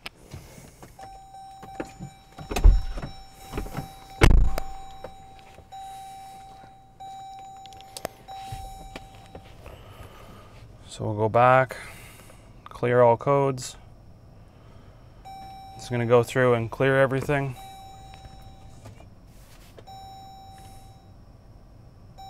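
A car door chime beeps steadily.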